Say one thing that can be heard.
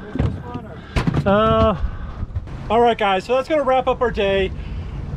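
A man talks loudly and with animation close by, outdoors.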